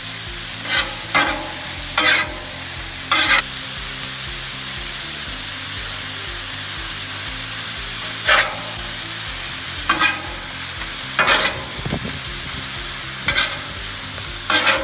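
Food sizzles steadily on a hot griddle.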